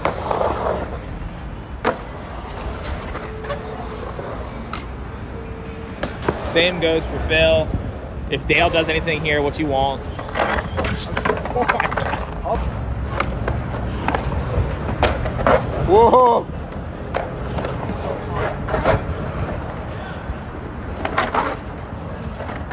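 Skateboard wheels rumble across smooth concrete.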